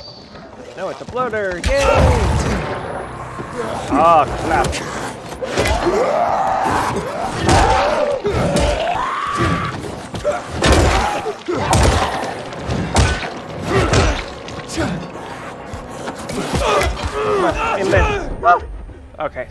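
Zombies snarl and shriek up close.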